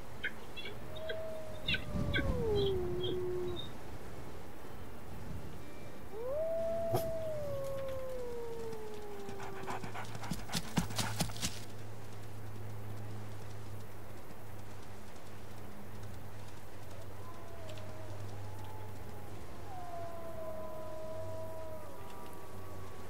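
A wolf howls with long gliding cries.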